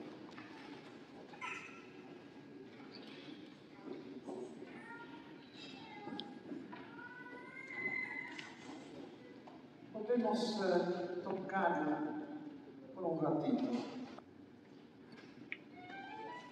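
A crowd of adults murmurs quietly in a large echoing hall.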